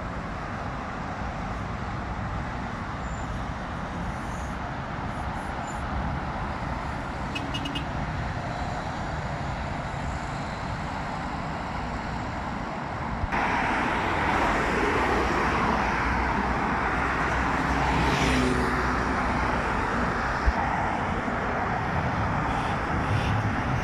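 Traffic rumbles steadily on a busy road nearby.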